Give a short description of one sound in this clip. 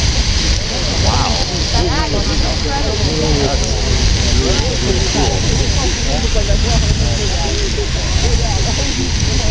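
A geyser gushes and roars with a steady rushing hiss, outdoors.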